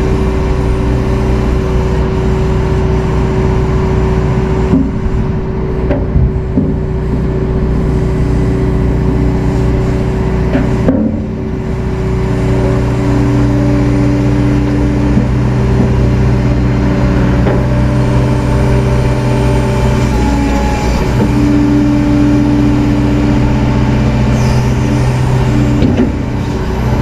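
A diesel engine hums steadily close by.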